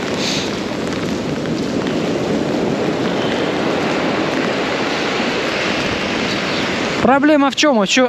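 Waves crash and wash against the shore.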